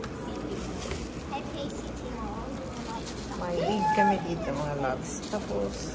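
Plastic wrapping crinkles as hands handle it.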